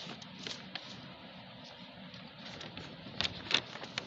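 A pencil scratches across paper as it draws a curve.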